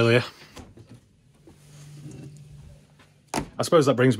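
A fridge door opens with a soft thud.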